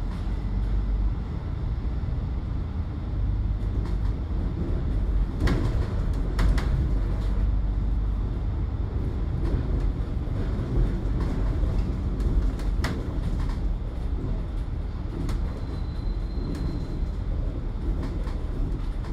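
City traffic hums along the street outside.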